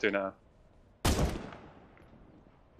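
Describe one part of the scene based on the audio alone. A rifle fires a single loud shot.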